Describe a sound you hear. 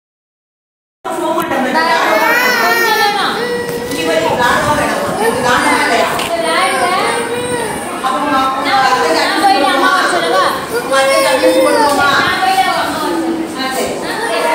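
A young boy cries and wails loudly nearby.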